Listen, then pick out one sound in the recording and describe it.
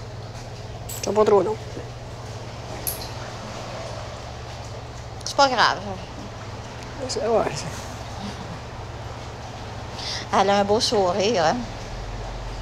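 An elderly woman speaks calmly nearby.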